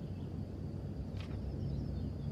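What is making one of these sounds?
A sheet of paper is set down on a hard shelf.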